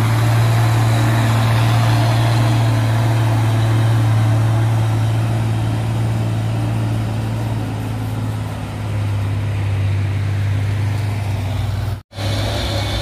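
A heavy truck's diesel engine rumbles loudly as it passes close by and drives away.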